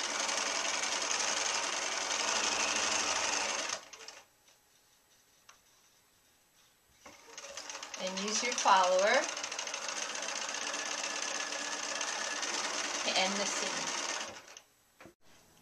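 A sewing machine runs steadily, stitching in fast bursts.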